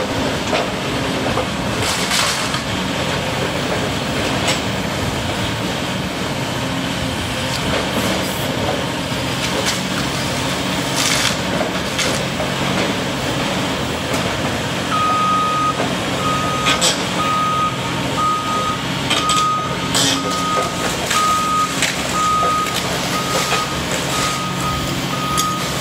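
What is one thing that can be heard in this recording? Wood and debris crack and crash as an excavator claw grabs them.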